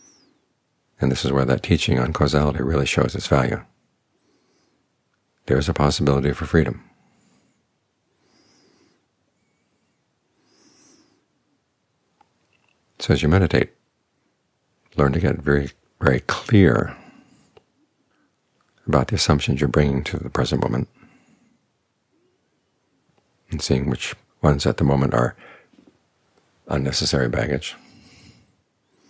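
An elderly man speaks calmly into a microphone, pausing often between phrases.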